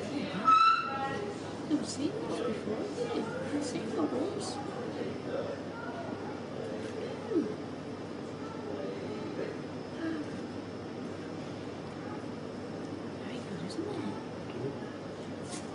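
A baby whimpers and fusses close by.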